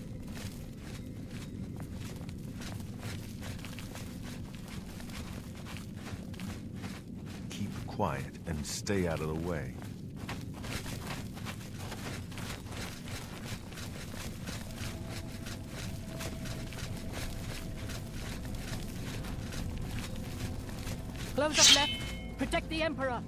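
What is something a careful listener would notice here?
Footsteps tap on a stone floor in an echoing corridor.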